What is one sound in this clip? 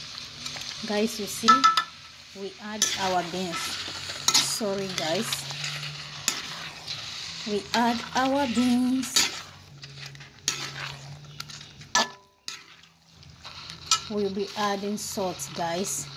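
A metal spatula scrapes and stirs beans in a metal pan.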